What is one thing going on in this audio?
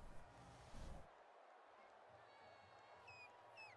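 A stadium crowd cheers loudly.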